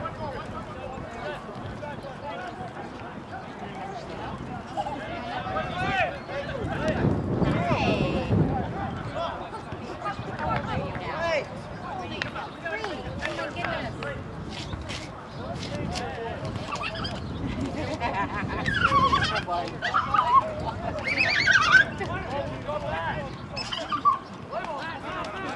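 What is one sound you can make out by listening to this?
Young men shout to each other in the distance across an open field outdoors.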